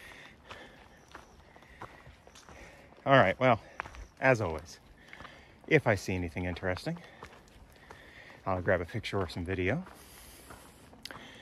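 Footsteps crunch on leaves and dirt.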